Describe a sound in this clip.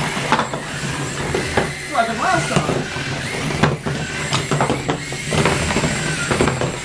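Small toy robots whir and buzz as they drive around.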